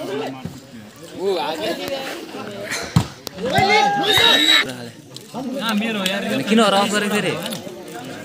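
Young men shout and cheer nearby, outdoors.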